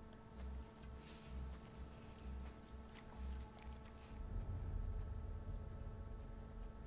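Tall grass rustles and swishes as someone pushes through it.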